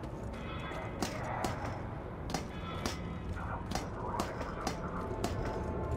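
Boots clank on the rungs of a metal ladder.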